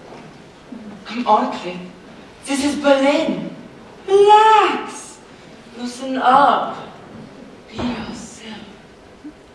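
A young man speaks on a stage, heard from across a large echoing hall.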